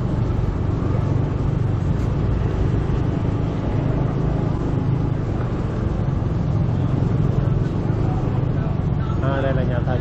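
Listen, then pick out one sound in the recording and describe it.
Other motorbikes buzz past nearby.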